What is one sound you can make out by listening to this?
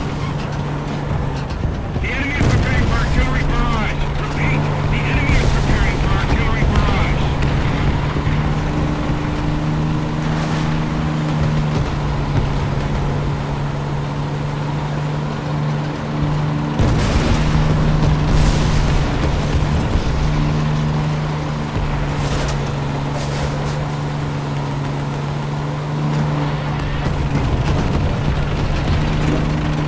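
Tank tracks clatter over cobblestones.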